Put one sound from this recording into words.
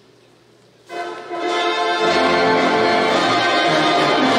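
A concert band begins playing loudly.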